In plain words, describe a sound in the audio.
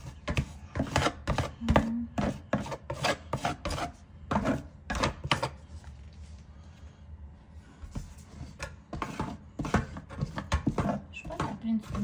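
A hand slaps and pats wet mortar in quick strokes.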